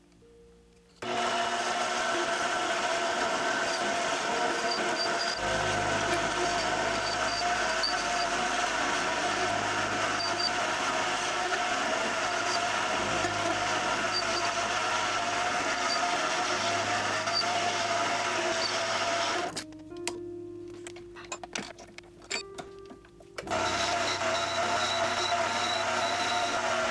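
A metal lathe whirs steadily as it spins.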